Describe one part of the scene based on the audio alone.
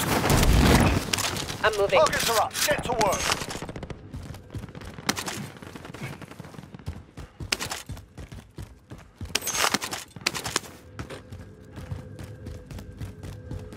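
Footsteps tap on a hard rooftop.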